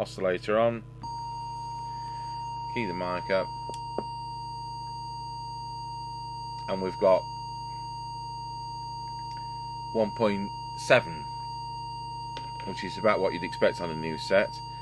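An electronic tuner sounds a steady, even beep tone.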